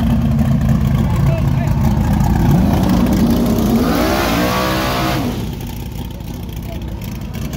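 A car engine rumbles loudly close by.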